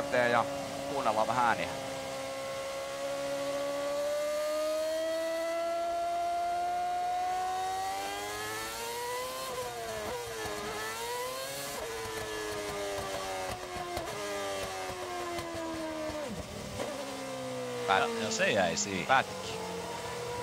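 A racing car engine screams at high revs, rising and falling in pitch as the driver shifts gears.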